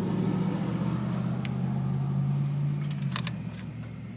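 Metal pliers crimp a wire connector with a soft squeeze.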